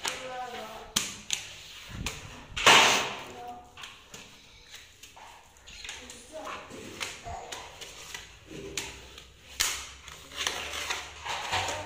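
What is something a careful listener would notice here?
A rubber squeegee scrapes and squeaks across wet tiles.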